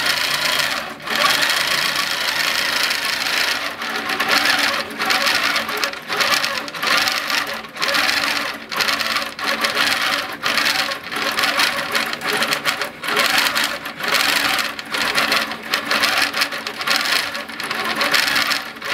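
A sewing machine hums and taps rapidly as it stitches in bursts with short pauses.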